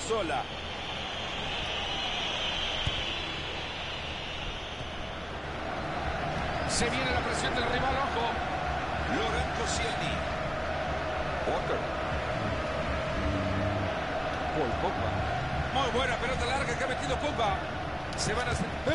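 A young man talks casually close to a microphone.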